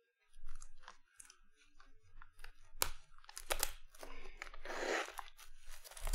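Cellophane wrapping crinkles as hands tear open a box.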